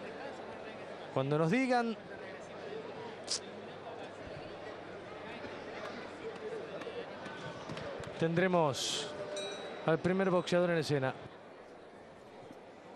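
A large indoor crowd murmurs and chatters.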